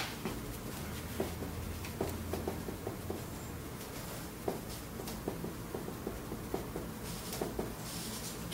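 A marker taps and squeaks against a whiteboard.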